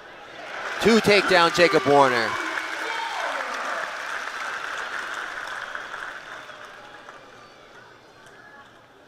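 A crowd cheers in a large echoing hall and slowly quiets down.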